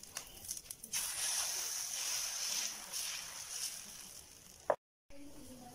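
Batter sizzles softly as it spreads on a hot pan.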